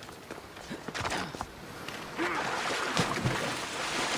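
A body splashes into water.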